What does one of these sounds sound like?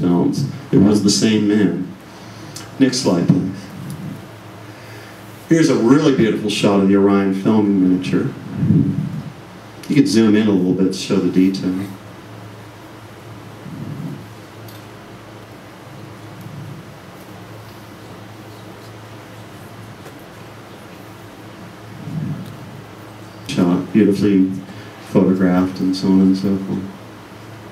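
A man speaks calmly into a microphone, heard through loudspeakers in a large echoing room, with long pauses.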